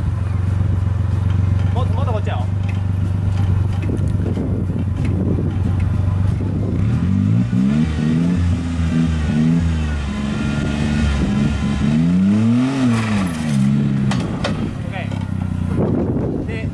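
Tyres crunch and grind over loose dirt and rocks.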